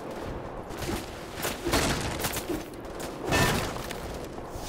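A metal pipe bangs against a wooden crate.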